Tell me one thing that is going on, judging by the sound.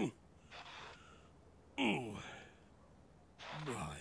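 A shovel scrapes through snow.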